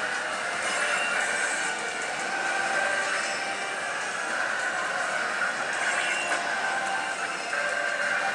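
A slot machine plays loud jingling music and electronic effects.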